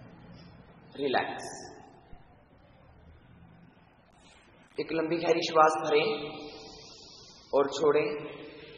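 A man speaks calmly and slowly, close to a microphone.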